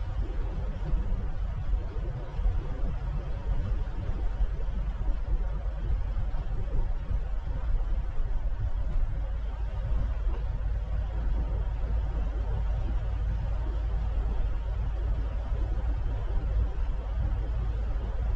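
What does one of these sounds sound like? A vehicle drives steadily along a road with a low rumble.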